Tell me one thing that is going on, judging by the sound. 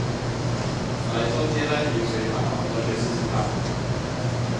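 A man speaks calmly into a microphone, as if lecturing.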